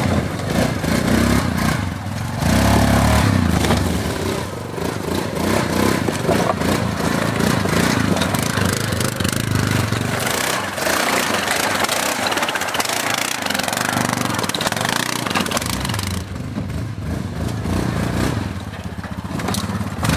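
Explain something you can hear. Tyres grind over rocks and logs.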